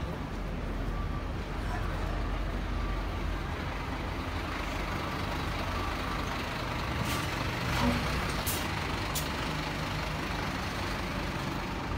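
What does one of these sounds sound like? A fire engine's motor rumbles up close.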